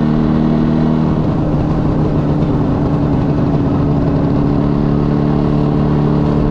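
A motorcycle engine runs steadily up close, its note shifting as it changes speed.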